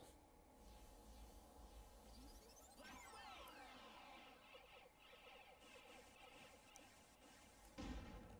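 An energy blast whooshes and shimmers.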